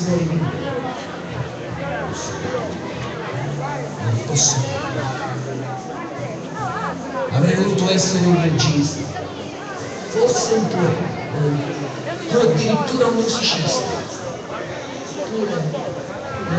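A large crowd of men and women chatters all around outdoors.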